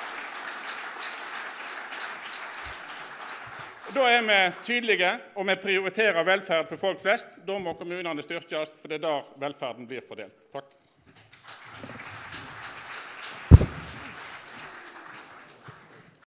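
A large audience claps and applauds in a big hall.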